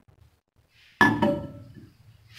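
A metal bowl clanks onto a glass turntable.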